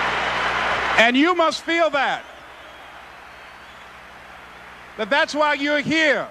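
A man speaks passionately into a microphone, heard through loudspeakers.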